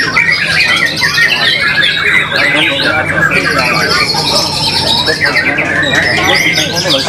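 A songbird sings a rich, varied warbling song close by.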